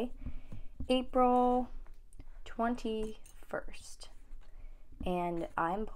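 Pages of a sketchbook rustle as they are turned.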